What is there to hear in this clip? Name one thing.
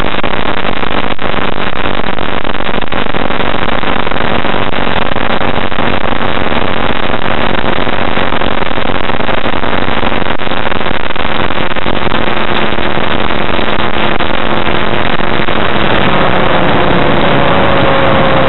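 Wind rushes hard past an open cockpit.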